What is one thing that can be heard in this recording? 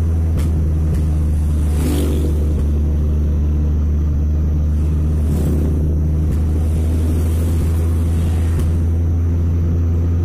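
Motorcycles pass by close to the car.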